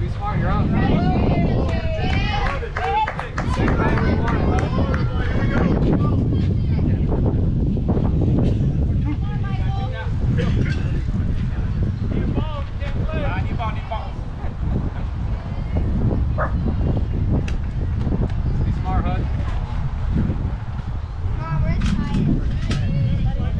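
Children and adults chatter and call out nearby.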